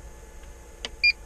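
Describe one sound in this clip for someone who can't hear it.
A computer gives a short beep.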